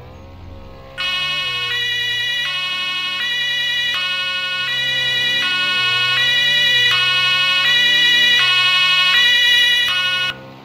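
A police siren wails in an alternating two-tone pattern.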